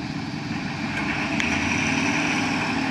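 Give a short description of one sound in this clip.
A fire engine's engine revs up as the truck pulls away.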